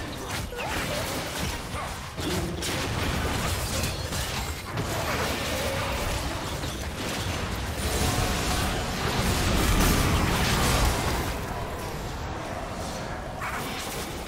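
Magic blasts and weapon hits crackle and thud in a fast, busy battle.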